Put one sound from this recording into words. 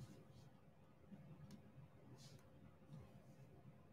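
Fingers brush and rub across small plastic beads.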